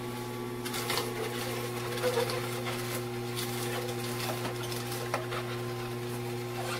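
A juicer motor hums steadily.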